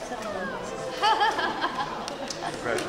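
A young woman laughs.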